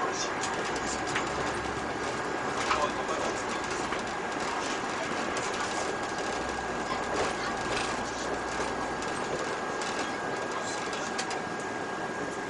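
A bus's diesel engine drones while driving.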